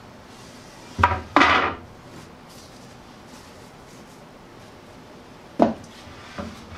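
A board knocks against a table.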